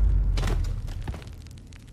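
A punch lands with a heavy thud.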